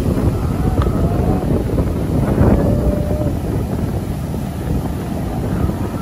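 A girl calls out in the surf.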